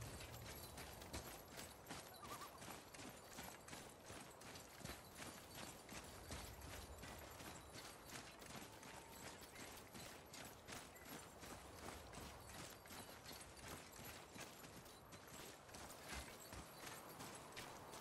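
Heavy footsteps crunch on gravel and stone at a steady walking pace.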